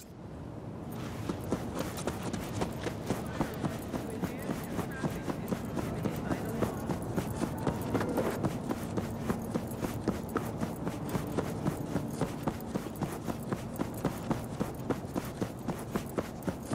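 Quick footsteps patter on pavement.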